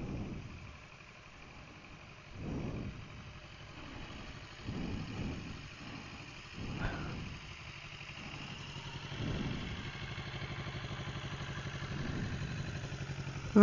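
A motorcycle engine rumbles nearby as it rides slowly past.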